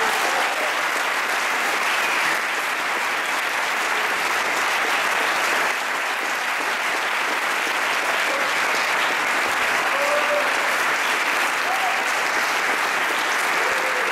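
A large crowd applauds steadily in an echoing hall.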